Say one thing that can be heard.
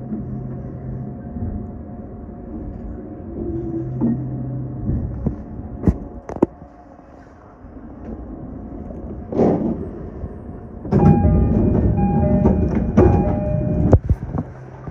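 A train rumbles low as it rolls slowly along the tracks.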